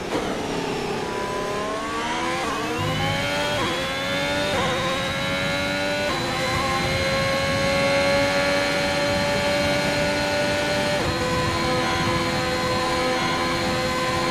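A racing car engine whines, rising in pitch through quick gear changes.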